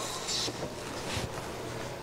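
A brush sweeps across wood.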